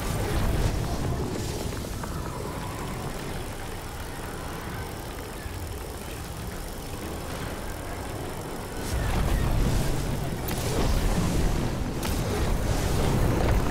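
A crackling energy beam hums and roars steadily.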